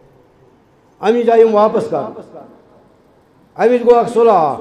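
A middle-aged man speaks with animation through a headset microphone, heard over a loudspeaker.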